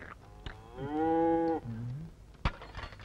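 A middle-aged man hums a short tune, close by.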